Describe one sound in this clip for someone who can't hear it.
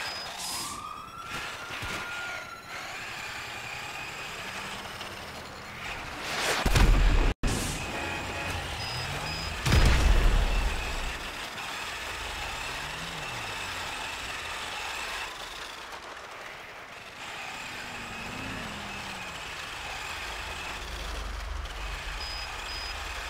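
A small remote-control car's motor whines steadily as it drives.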